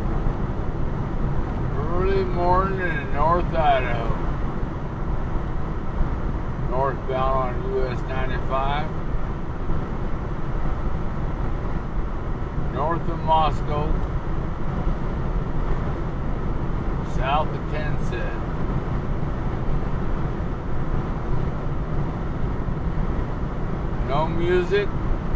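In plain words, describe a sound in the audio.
Tyres rumble steadily over the road.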